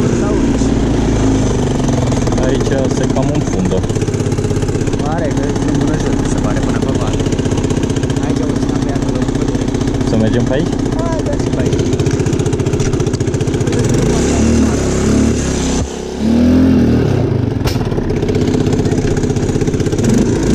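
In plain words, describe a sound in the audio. An all-terrain vehicle's engine rumbles steadily close by, rising and falling as it revs.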